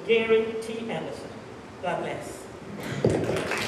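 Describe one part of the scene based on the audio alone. A woman speaks calmly through a microphone.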